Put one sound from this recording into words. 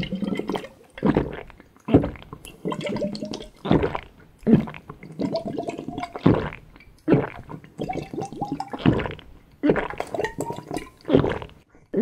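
A man gulps and slurps a drink loudly, close up.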